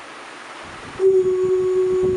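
An electronic keyboard plays a sustained note.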